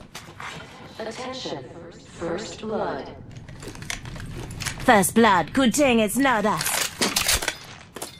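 An item is picked up with a short metallic clink.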